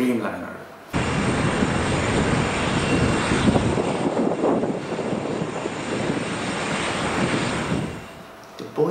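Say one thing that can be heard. A jet airliner roars loudly as it speeds down the runway.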